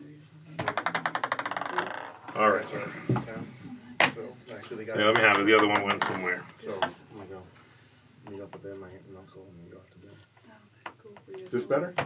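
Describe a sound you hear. Men talk with animation over an online call.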